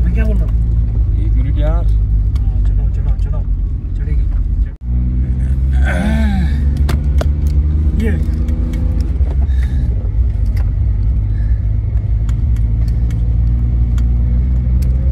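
Hail ticks against a car windshield.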